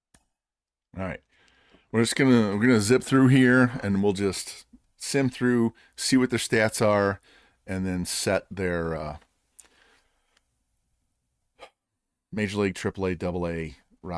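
A middle-aged man talks with animation close to a microphone.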